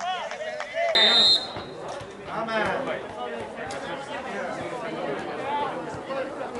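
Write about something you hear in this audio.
Spectators nearby talk and cheer.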